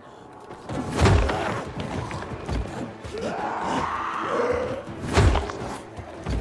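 Heavy blows thud against wood as a club strikes.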